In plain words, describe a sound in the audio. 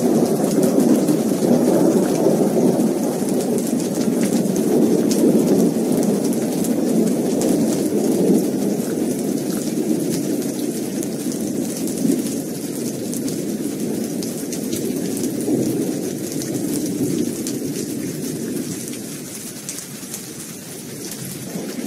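Heavy rain pours steadily outdoors, slowly easing.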